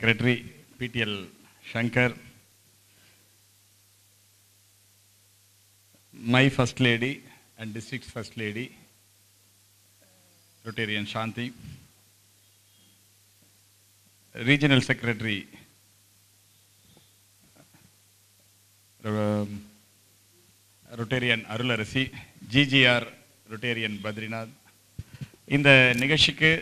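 A man speaks with animation into a microphone over loudspeakers, pausing between phrases.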